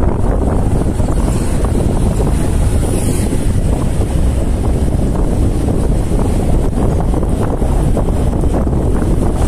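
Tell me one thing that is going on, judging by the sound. Wind rumbles loudly against a microphone on a moving motorcycle.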